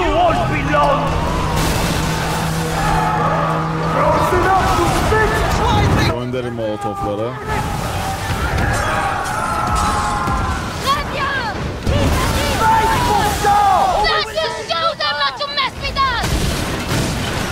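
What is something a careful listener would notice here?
Cannons boom and explosions crash in a game.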